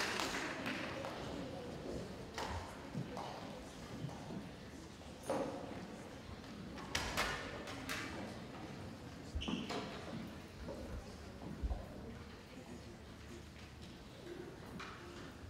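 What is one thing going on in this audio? A string orchestra plays in a large echoing hall.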